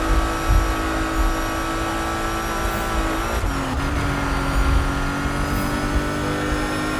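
A car engine roars at high speed, briefly dropping in pitch as it shifts gear.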